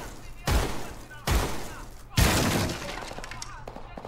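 A door bursts open with a loud bang.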